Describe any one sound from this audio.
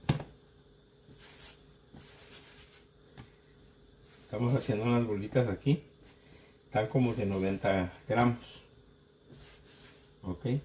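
Hands softly pat and roll dough on a countertop.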